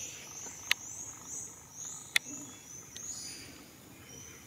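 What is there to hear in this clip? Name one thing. A monkey chews on leaves.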